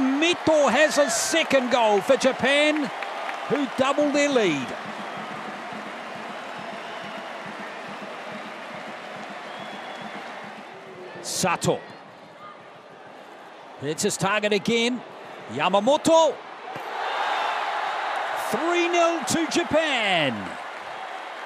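A crowd cheers and shouts in a large open stadium.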